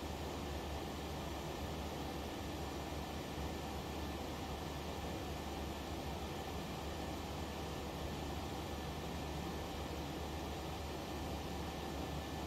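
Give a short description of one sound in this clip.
Jet engines drone steadily from inside an airliner's cockpit.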